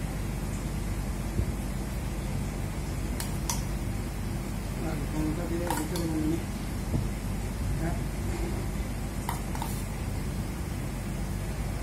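A spoon scrapes and taps as a filling is scooped and spread.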